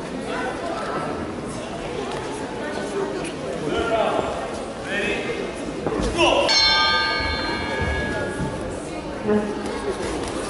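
People talk and call out in a large echoing hall.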